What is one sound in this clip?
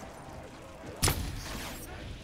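A futuristic cannon fires with a sharp blast.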